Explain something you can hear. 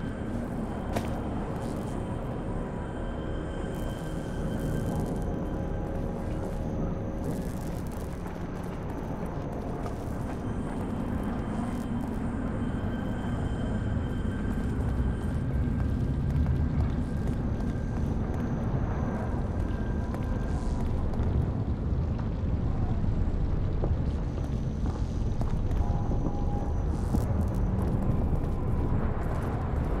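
Footsteps tread on stone.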